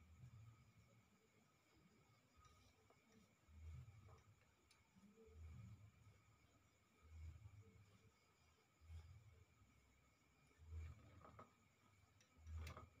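Hands rub and press on bare skin in slow, regular strokes.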